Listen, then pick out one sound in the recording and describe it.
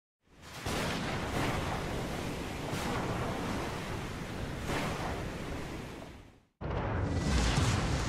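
Wind roars over a stormy sea.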